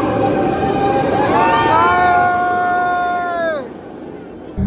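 Riders scream as a roller coaster speeds past.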